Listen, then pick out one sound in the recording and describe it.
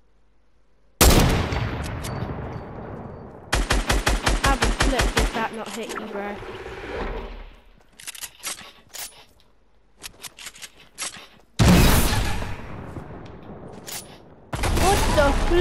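A rifle fires loud, sharp shots with a ringing echo.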